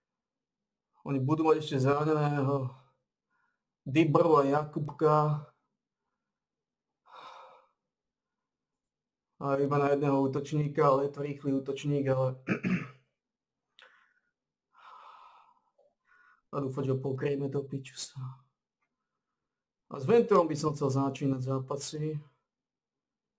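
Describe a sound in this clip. A man speaks calmly, close to a microphone, in short bursts with pauses.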